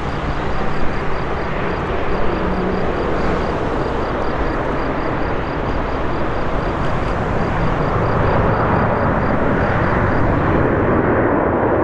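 A four-engine jumbo jet roars at full power as it climbs away after takeoff.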